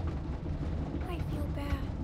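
A young girl speaks quietly up close.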